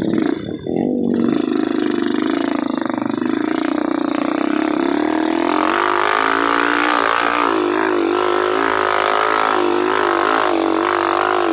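A motorcycle engine revs loudly and strains as the bike rides uphill.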